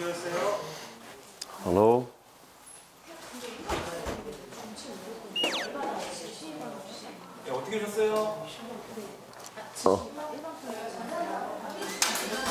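A man speaks in a friendly tone, close by.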